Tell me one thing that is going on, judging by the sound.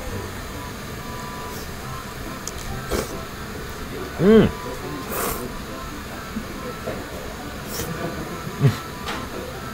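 A man slurps noodles loudly.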